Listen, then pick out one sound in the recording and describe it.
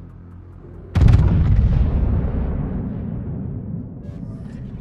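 A warship's heavy guns fire a loud booming salvo that rumbles and slowly fades.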